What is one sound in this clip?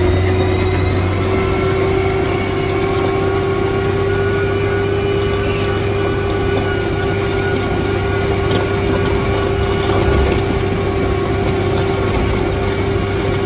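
The blade of a motor grader pushes through wet mud.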